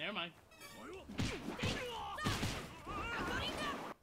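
Punches thud in a video game fight.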